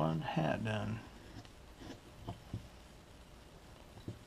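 A carving knife shaves thin curls from a block of wood with soft scraping clicks.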